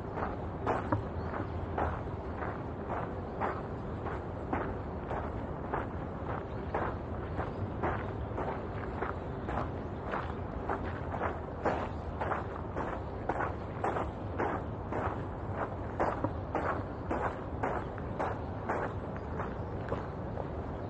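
Footsteps crunch steadily on a gravel path outdoors.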